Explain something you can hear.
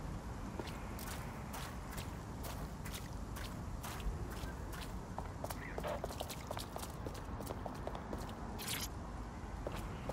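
Footsteps tap on stone steps.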